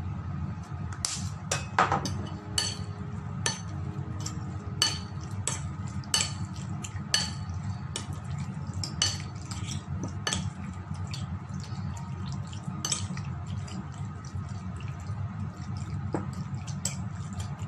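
Fingers squish and slap wet meat in a bowl.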